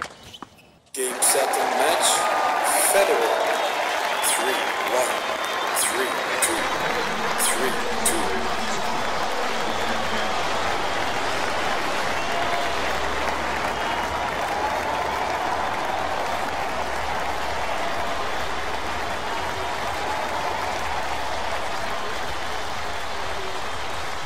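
A large crowd murmurs steadily in a big stadium.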